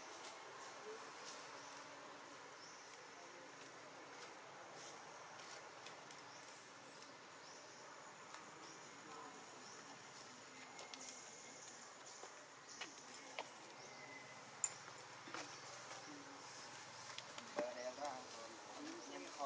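A baby monkey suckles softly, close by.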